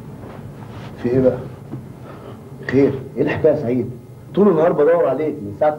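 A middle-aged man speaks calmly nearby in a room.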